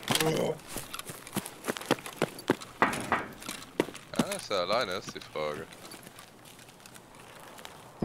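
Footsteps rustle through grass and over gravel.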